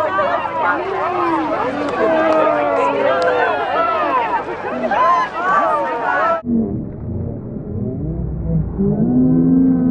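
Feet splash and slosh through muddy water.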